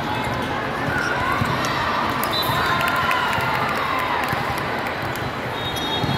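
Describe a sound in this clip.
Young women cheer together after a point.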